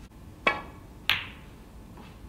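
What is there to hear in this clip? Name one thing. Snooker balls knock together with a crisp clack.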